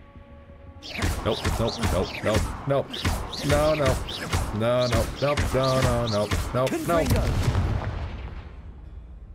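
A magic spell crackles and whooshes loudly.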